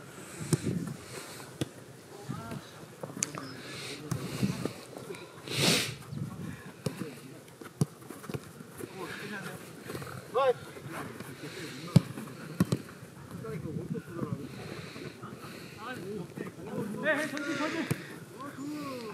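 Young men shout and call out to each other across the field.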